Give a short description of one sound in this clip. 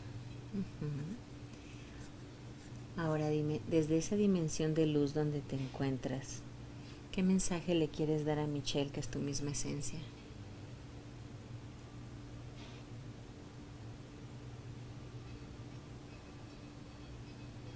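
A woman snores softly close by.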